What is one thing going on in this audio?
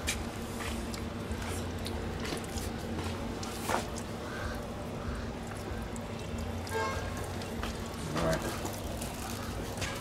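Water splashes as a man rubs his hands under a tap.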